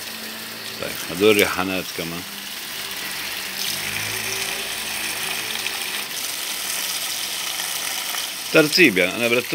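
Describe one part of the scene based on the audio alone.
Water sprays from a hose and splashes onto plants and pots.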